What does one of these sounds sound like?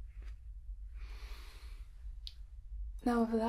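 A young woman sniffs deeply.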